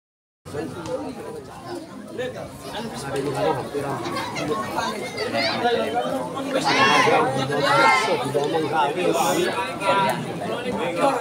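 A crowd of people chatter outdoors at a distance.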